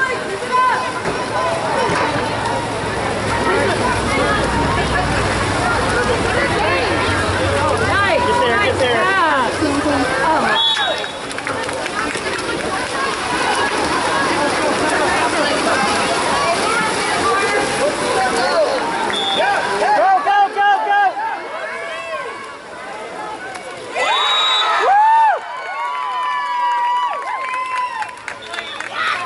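Players call and shout to each other outdoors.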